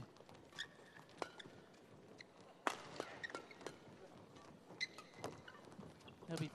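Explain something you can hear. A shuttlecock is struck back and forth with rackets.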